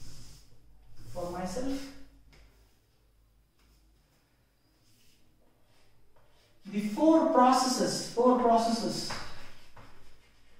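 A man speaks clearly and calmly, close to a microphone.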